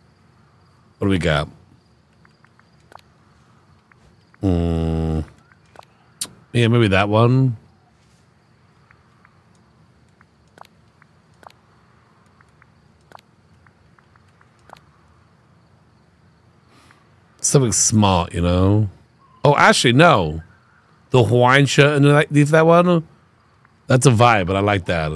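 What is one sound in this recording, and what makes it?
A man talks casually and with animation into a close microphone.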